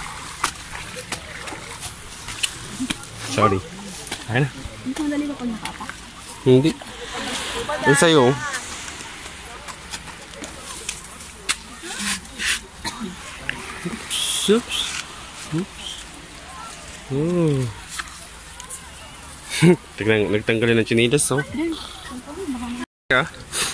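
Sandals scuff and tap on rock underfoot.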